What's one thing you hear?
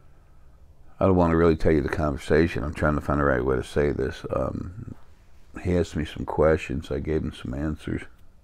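An elderly man speaks calmly and thoughtfully into a close microphone.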